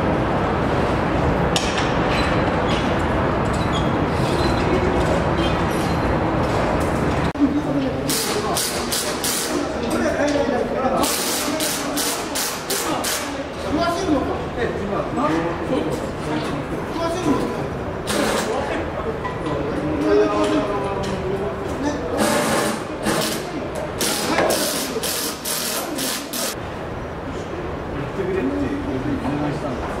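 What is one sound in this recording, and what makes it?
Workers knock and clatter while fitting heavy panels.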